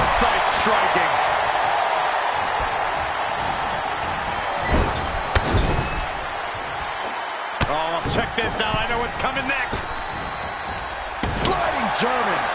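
A crowd cheers and roars in a large arena.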